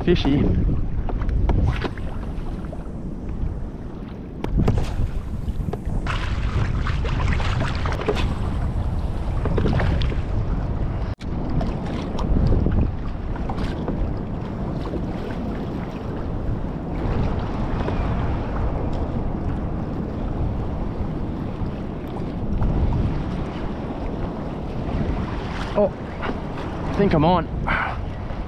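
Choppy waves slap and splash nearby.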